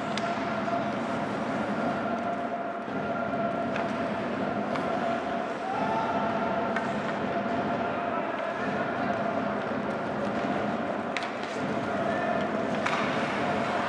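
Hockey sticks knock against a puck with sharp clacks.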